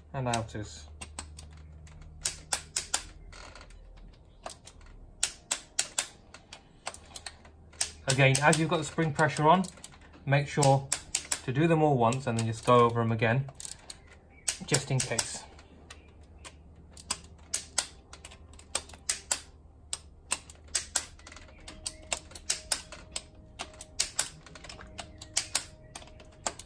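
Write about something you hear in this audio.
A ratchet wrench clicks rapidly as bolts are turned.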